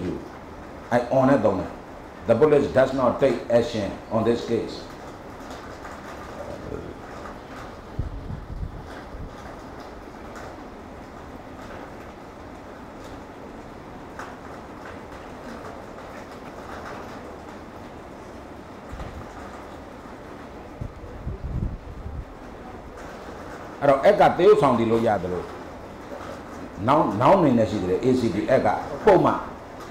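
An elderly man speaks through a handheld microphone.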